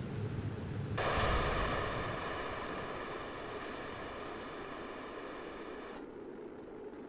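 A loud burst of booming and crackling rings out as the rocket stages break apart.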